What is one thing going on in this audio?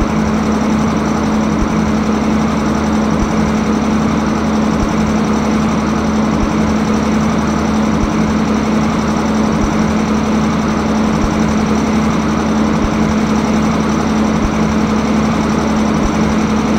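A locomotive hums steadily while idling.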